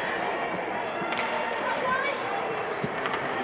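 Hockey sticks clack against each other and the ice.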